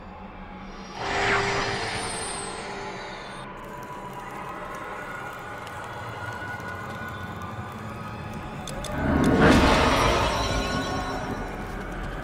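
A magical portal hums and whooshes.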